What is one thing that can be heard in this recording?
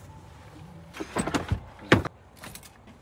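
A van's sliding door rolls open with a loud thud.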